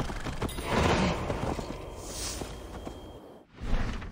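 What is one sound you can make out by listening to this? A horse's hooves thud on a dirt path.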